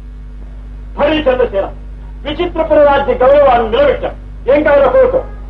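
A man speaks loudly and forcefully, close by.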